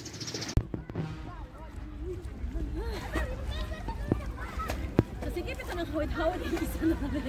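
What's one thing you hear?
Young girls talk and laugh close by.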